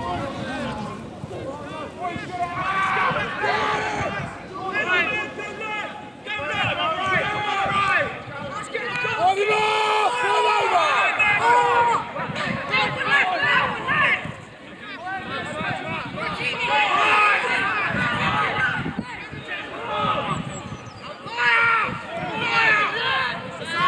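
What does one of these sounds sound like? Teenage boys shout and call to each other on an open field.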